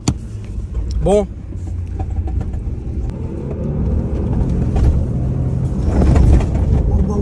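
A man talks and laughs with animation close by.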